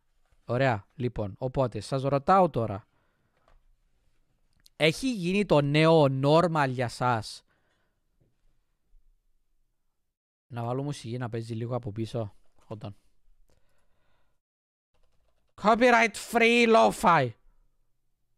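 A man speaks calmly and close into a microphone, in short bursts with pauses.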